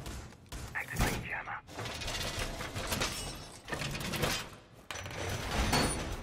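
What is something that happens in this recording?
Metal clanks and rattles as a wall panel is reinforced.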